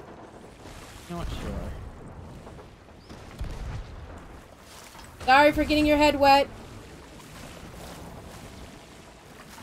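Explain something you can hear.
Water gushes and sloshes inside a ship's hold.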